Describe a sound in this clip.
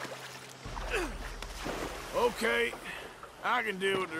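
Water splashes as someone wades through a shallow swamp.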